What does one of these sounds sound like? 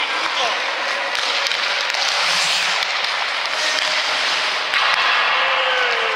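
Pucks clack off hockey sticks.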